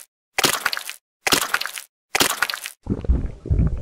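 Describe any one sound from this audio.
Blows land with sharp thuds in quick bursts.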